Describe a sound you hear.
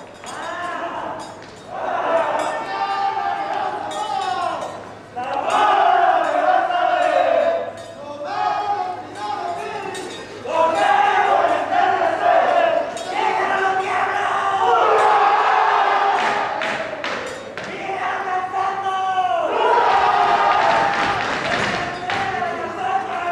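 Dancers' feet stamp and shuffle on a wooden stage.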